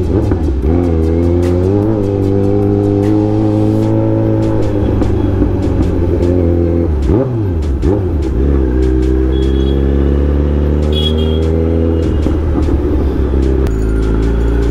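A motorcycle engine hums steadily up close, its pitch dipping and rising as the rider slows and speeds up.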